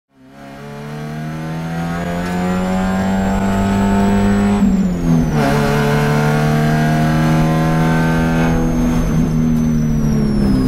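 A race car engine roars loudly from inside the cabin, rising in pitch and dropping with each gear shift.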